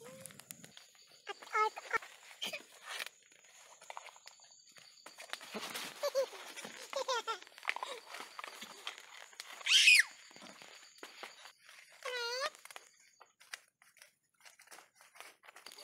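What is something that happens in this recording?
Young children babble and squeal close by.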